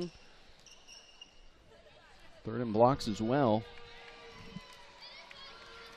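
A volleyball bounces on a hard floor in a large echoing hall.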